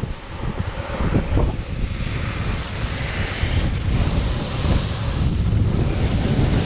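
Wind rushes loudly across a microphone outdoors.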